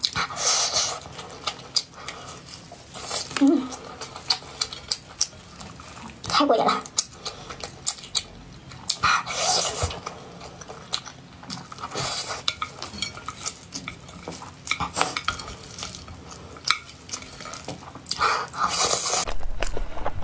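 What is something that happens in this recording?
A young woman chews and slurps noodles close to a microphone.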